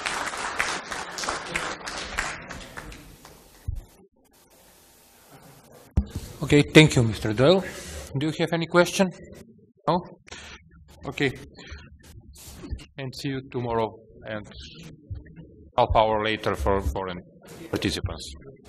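A man speaks steadily through a microphone in a large room.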